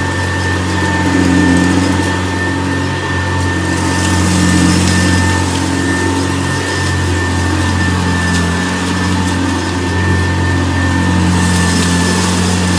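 A vintage upright vacuum cleaner hums as it is pushed back and forth over carpet.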